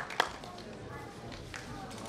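Footsteps shuffle across a wooden stage.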